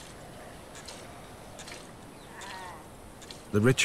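Milk squirts into a pail.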